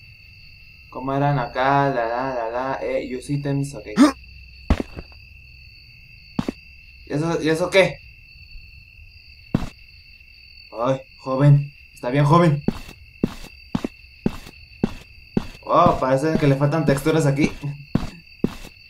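A young man talks with animation close to a headset microphone.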